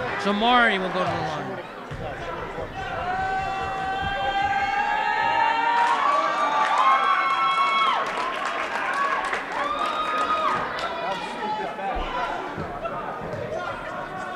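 A crowd of spectators chants and cheers in a large echoing gym.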